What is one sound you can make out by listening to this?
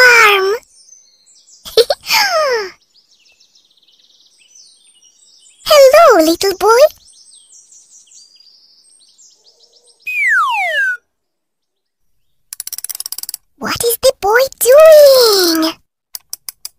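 A young child's voice talks cheerfully, close up.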